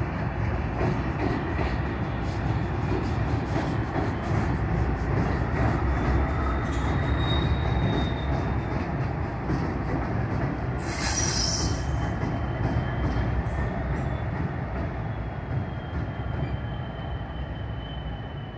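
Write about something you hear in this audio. A freight train rumbles heavily across a steel bridge nearby.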